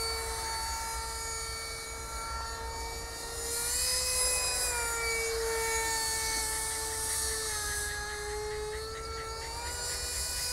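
A model plane's small engine whines steadily overhead, its pitch rising and falling as it passes.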